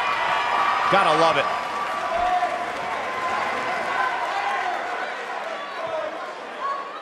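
A large crowd cheers and roars in a big arena.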